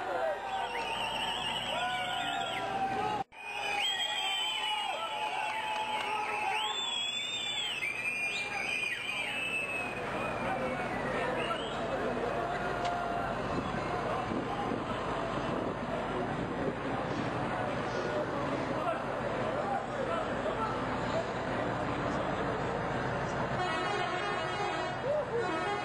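A large crowd chants and cheers outdoors.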